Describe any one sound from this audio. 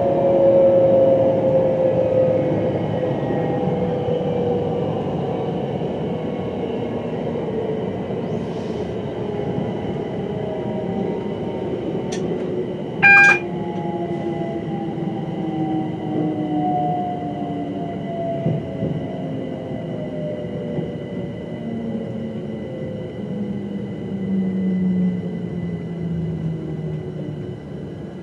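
A train's wheels clack over rail joints.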